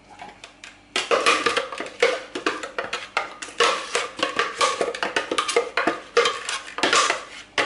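A spatula scrapes batter from a plastic bowl.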